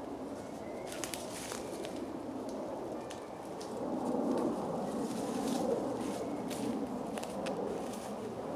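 Footsteps crunch through dry leaf litter.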